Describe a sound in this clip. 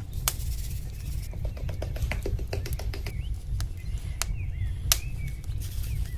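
A spice shaker rattles as seasoning is shaken out.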